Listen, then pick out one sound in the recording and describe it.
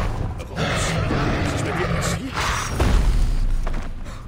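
A large beast charges with heavy thuds and a deep rumble.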